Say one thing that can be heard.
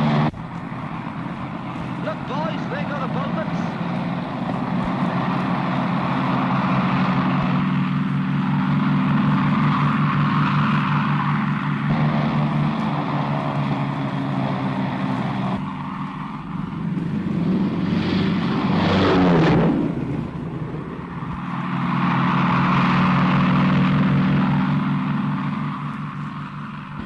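Aircraft engines drone steadily.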